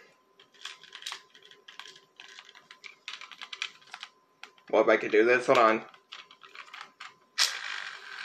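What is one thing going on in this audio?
Plastic toy parts click and rattle in a man's hands.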